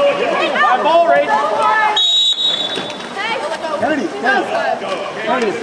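A crowd of spectators shouts and cheers nearby.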